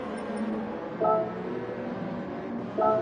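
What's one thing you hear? A game menu chimes as a choice is selected.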